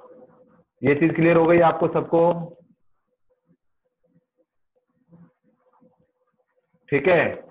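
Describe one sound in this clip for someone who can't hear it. A man speaks calmly into a microphone, explaining in short bursts.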